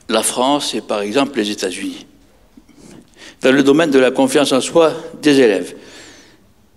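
An elderly man speaks with animation through a microphone in a large echoing hall.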